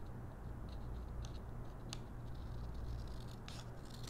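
Small scissors snip through paper.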